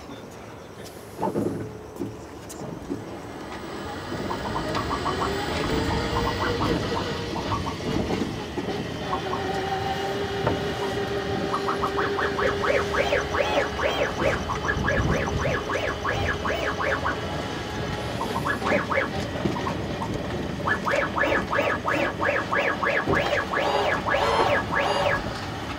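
An electric cart's motor whines as it drives.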